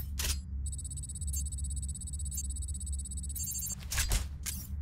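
An electronic device beeps and chirps rapidly.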